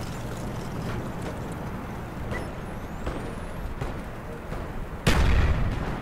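A small fire crackles.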